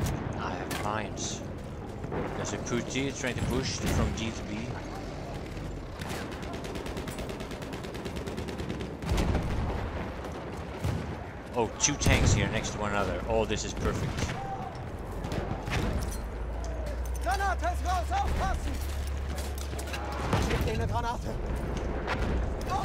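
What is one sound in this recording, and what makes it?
Distant gunfire and explosions rumble through a battle.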